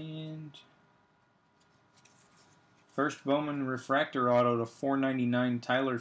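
Trading cards rustle and tap softly as hands handle them.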